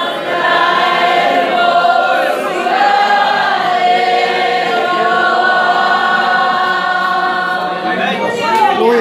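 A large group sings together in an echoing hall.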